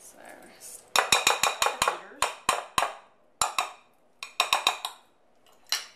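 Metal mixer beaters tap against a glass bowl.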